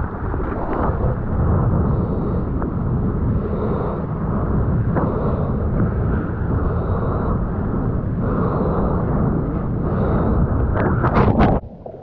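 Whitewater foams and churns close by.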